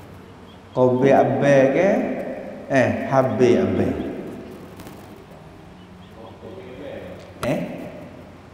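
A middle-aged man speaks calmly into a headset microphone, with a slow, chanting lilt.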